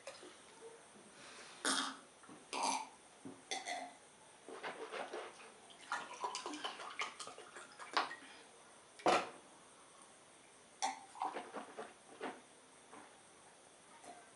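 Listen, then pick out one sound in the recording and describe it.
A man gulps a drink close up.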